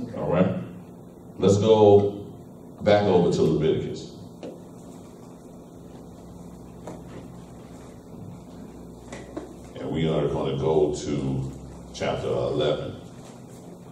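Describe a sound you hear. A man speaks calmly into a microphone, with pauses, in a room with some echo.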